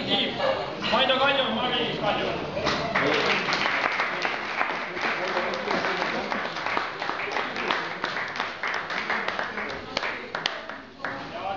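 A young man reads aloud to a room, unamplified.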